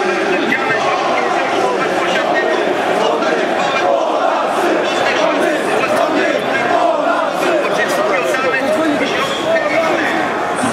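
A large crowd chants and shouts loudly outdoors, close by.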